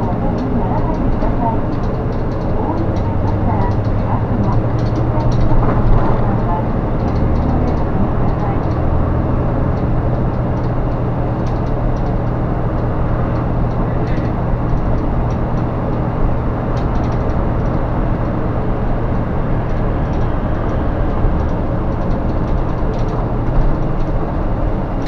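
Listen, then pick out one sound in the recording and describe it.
A bus cabin rattles and clatters over the road.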